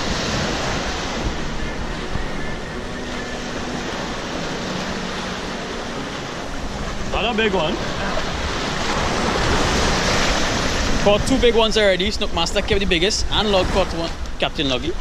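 Waves wash onto the sand and break against a seawall.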